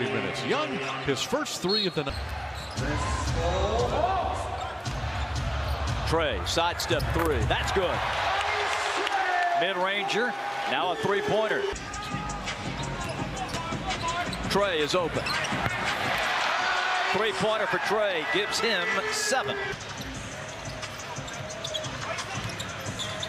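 A crowd cheers loudly in a large echoing arena.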